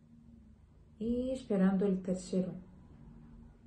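A young woman speaks briefly and calmly into a microphone, close by.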